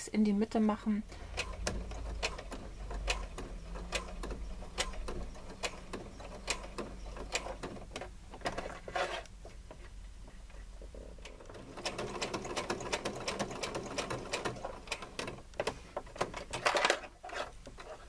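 A sewing machine runs, stitching with a steady whir.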